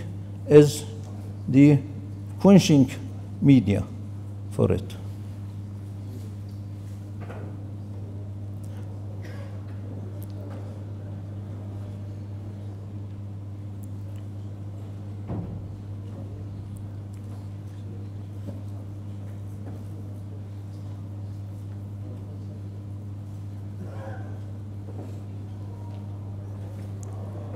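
A man speaks over a microphone in short loud bursts, then quietly.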